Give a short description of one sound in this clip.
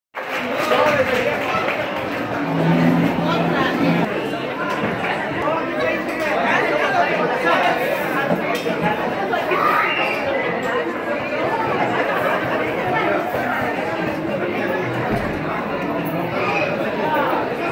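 A woman sings into a microphone over loudspeakers in a large echoing hall.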